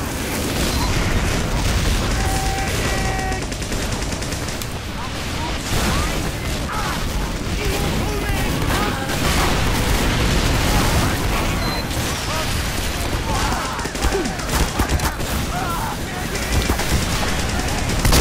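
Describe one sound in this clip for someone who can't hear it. A knife slashes and stabs with sharp swishes.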